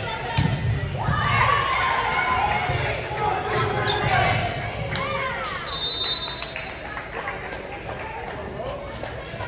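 Young women shout and cheer across an echoing gym.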